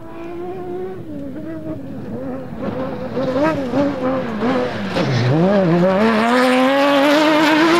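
Tyres crunch and scatter gravel on a dirt track.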